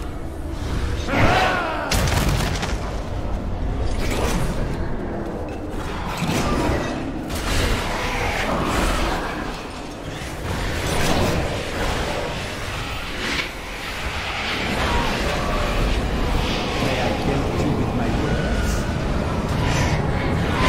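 Game spells crackle and boom in combat.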